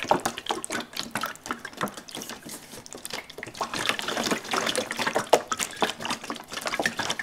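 A plastic jug crinkles and creaks as hands squeeze it.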